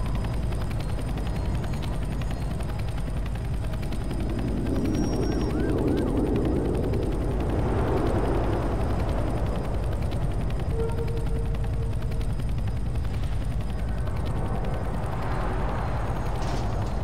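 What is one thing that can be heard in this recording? Footsteps walk steadily across gravel.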